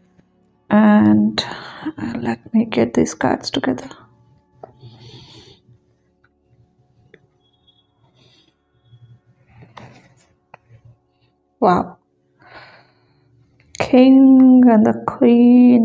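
Cards are laid down and slid softly across a cloth.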